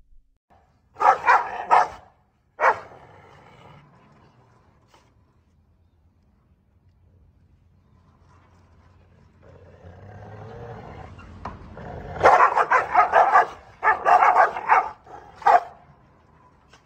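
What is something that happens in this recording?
Two dogs bark fiercely at each other.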